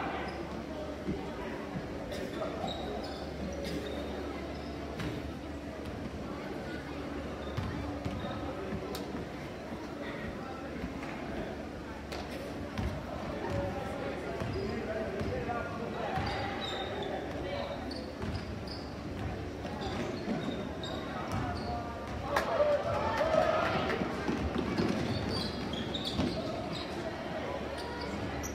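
A crowd of spectators murmurs and cheers.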